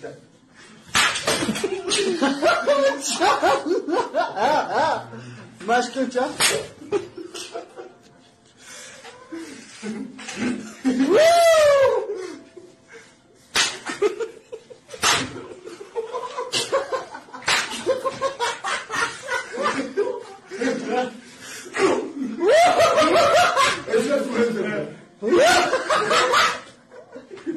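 Men clap their hands sharply.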